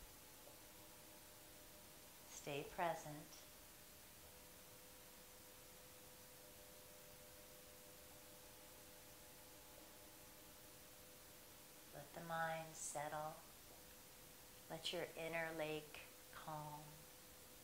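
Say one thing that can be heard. A singing bowl rings with a soft, steady hum.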